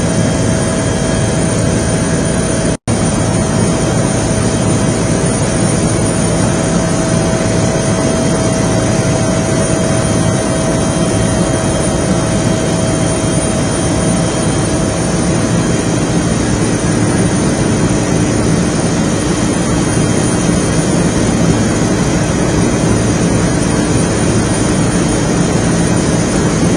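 A helicopter engine and rotor roar steadily from inside the cabin.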